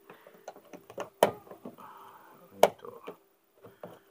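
A plastic car door handle clicks as a hand pulls it.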